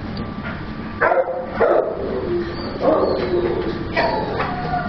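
Dogs bark loudly in an echoing room.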